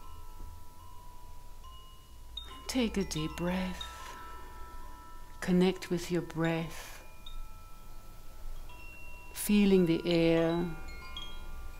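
Crystal singing bowls ring with steady, pure tones.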